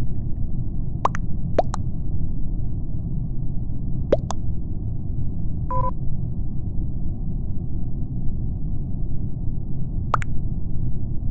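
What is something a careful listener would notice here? A short game notification chime plays as chat messages pop up.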